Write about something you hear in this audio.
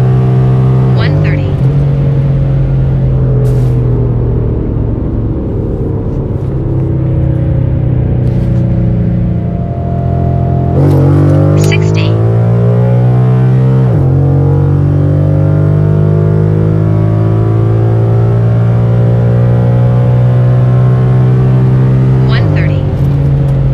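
A car engine's roar drops sharply as the gears shift, then climbs again.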